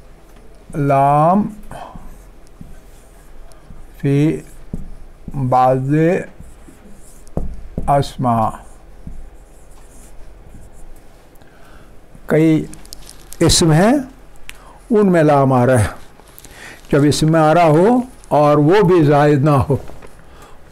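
An elderly man speaks slowly and calmly into a close microphone, with pauses.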